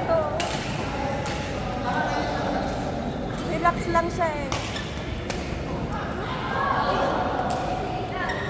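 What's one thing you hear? Shuttlecocks are struck sharply with rackets, now and then, in a large echoing hall.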